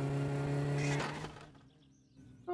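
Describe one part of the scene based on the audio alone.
A car engine revs steadily.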